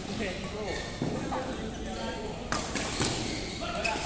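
A badminton racket strikes a shuttlecock with sharp pops in a large echoing hall.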